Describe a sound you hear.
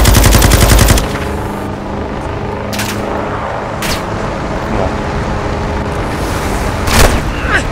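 A truck engine rumbles steadily while driving over rough ground.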